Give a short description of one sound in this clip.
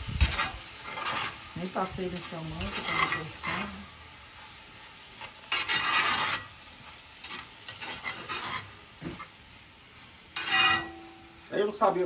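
A metal spoon scrapes and clinks in a pot.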